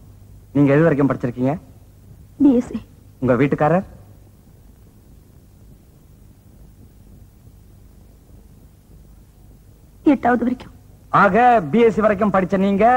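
A man speaks forcefully and with animation.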